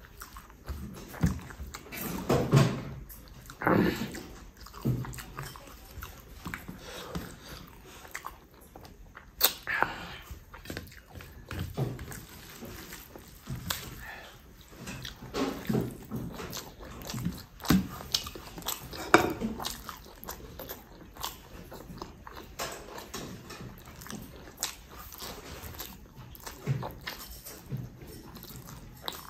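A young man chews and smacks his lips loudly, close up.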